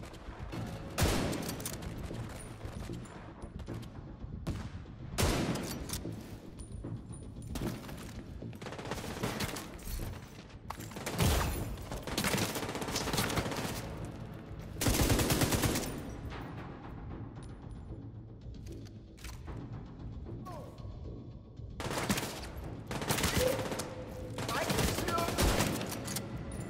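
A sniper rifle fires loud single shots that echo.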